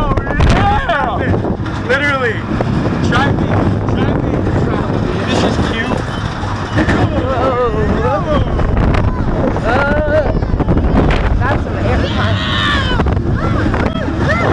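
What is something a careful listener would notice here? Wind rushes loudly past on a fast ride.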